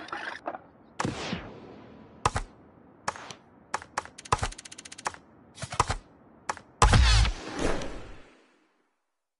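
Menu clicks and beeps sound in quick succession.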